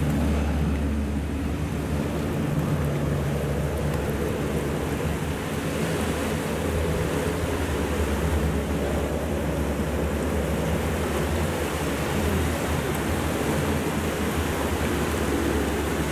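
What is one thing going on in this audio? A twin-turboprop water bomber drones as it flies low over the sea and climbs away.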